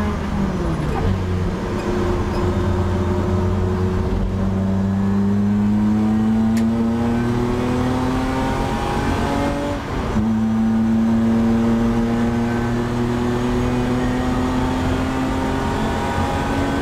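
A race car engine roars loudly close by, its pitch climbing steadily as it revs.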